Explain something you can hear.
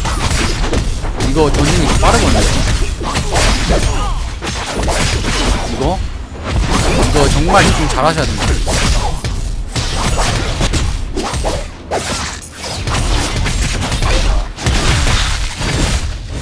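Magic blasts burst loudly.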